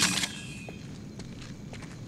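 Flames crackle nearby.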